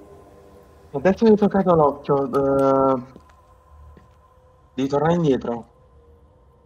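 A man speaks with animation into a headset microphone, close by.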